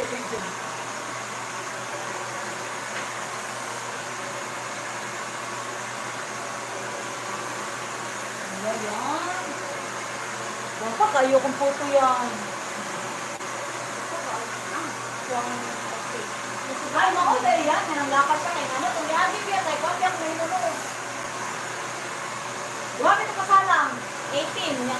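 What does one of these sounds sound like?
A hair dryer blows with a steady whir.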